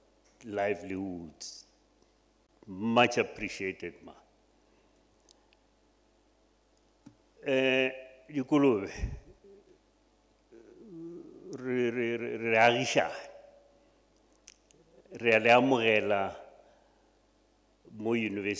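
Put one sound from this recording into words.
A middle-aged man speaks calmly into a microphone in short bursts, with pauses.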